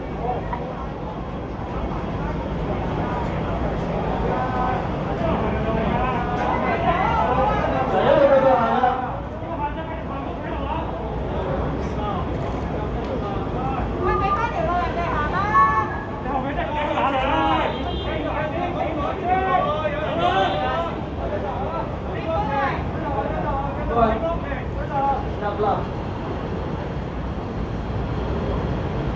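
A crowd of men and women shouts and talks loudly nearby outdoors.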